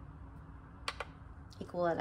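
A finger taps the button of a kitchen scale with a soft click.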